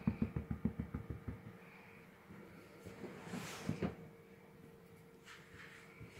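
A puppy's claws scratch and patter on a blanket.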